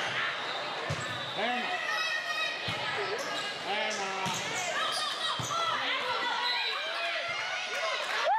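A volleyball thuds as it is hit.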